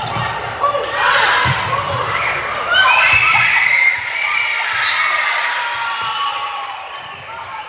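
Girls shout and cheer loudly in a large echoing gym.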